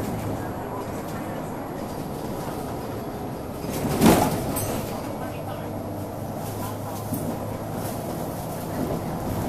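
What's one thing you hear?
A bus engine hums steadily from inside as the bus drives along.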